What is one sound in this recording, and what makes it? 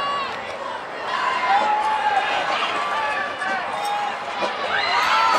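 A crowd cheers in the stands.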